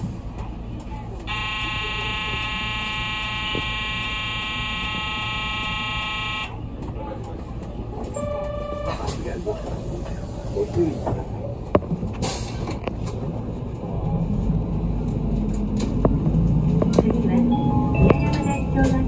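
A bus engine rumbles low and grows louder as the bus pulls away.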